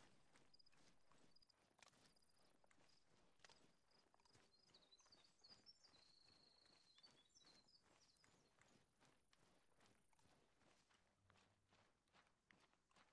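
Footsteps brush through grass and then crunch on gravel at a steady pace.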